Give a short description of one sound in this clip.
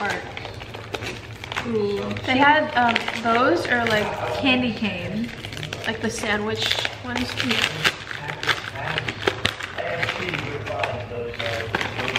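A plastic snack bag crinkles and rustles.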